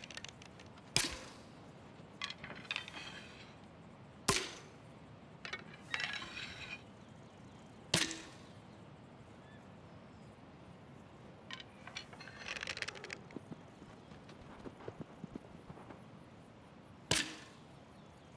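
A bowstring twangs sharply as an arrow is loosed, several times.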